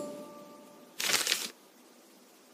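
Paper rustles as a letter unfolds.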